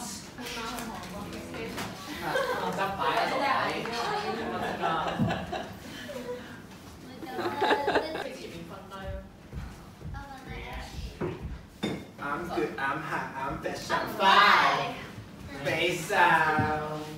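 Young women laugh and chatter loudly close by.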